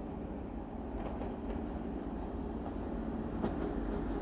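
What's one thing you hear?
A train rumbles as it approaches from the distance.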